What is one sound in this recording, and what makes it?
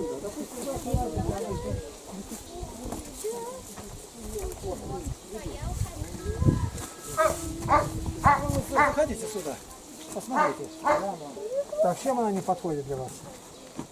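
Footsteps crunch on the ground as a group walks.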